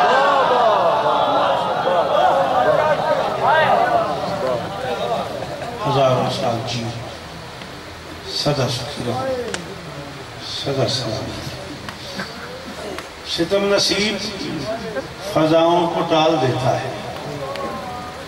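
A man speaks with passion into a microphone through loudspeakers, his voice rising and falling.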